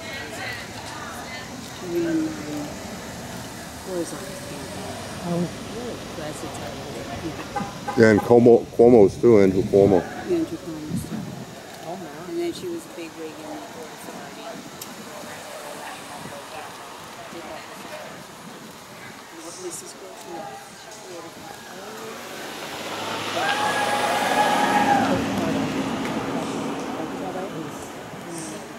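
People chat and laugh outdoors at a short distance.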